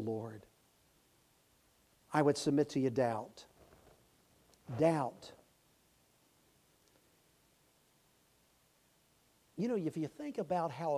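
An elderly man preaches with emphasis into a microphone, with pauses between phrases.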